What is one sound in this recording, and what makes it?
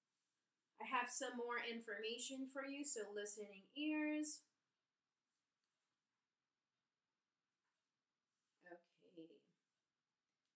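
A woman reads aloud close to a microphone, slowly and expressively.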